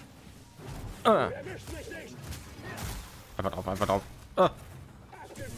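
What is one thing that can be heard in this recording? Lightsaber blades clash and sizzle in a fight.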